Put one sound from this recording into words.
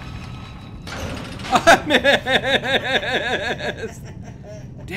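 A man laughs loudly into a microphone.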